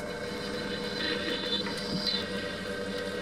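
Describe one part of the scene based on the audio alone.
A drill bit grinds into metal.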